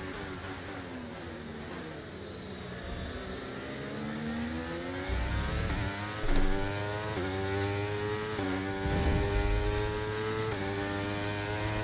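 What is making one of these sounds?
A racing car engine revs higher and higher, dropping briefly at each gear change.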